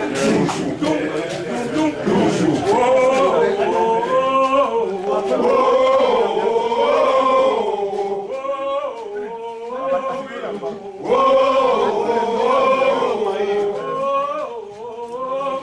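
A group of men sing a rhythmic chant together close by.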